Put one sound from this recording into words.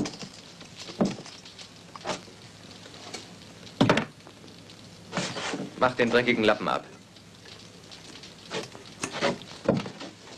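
Crockery clinks and knocks on a wooden shelf.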